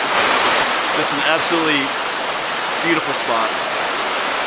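A middle-aged man speaks calmly, close to the microphone.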